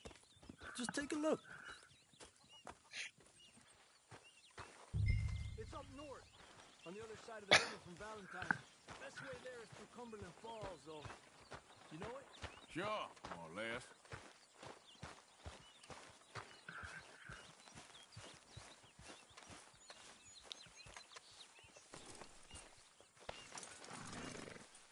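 Footsteps crunch on grass.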